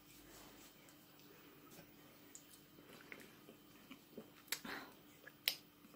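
A young woman sips a drink from a can.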